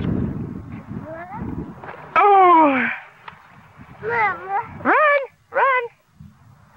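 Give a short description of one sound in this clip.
A toddler squeals and babbles nearby in high-pitched bursts.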